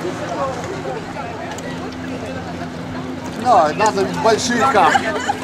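Young people shout and call out loudly outdoors over water.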